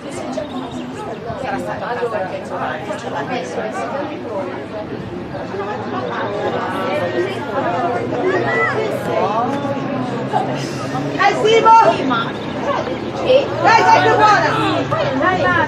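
Young boys shout and call to each other outdoors.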